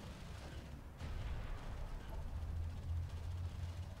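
A deep explosion rumbles.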